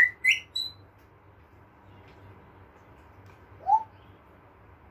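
A parrot whistles and chirps sharply close by.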